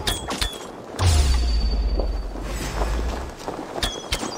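A shield slams with a heavy, booming thud.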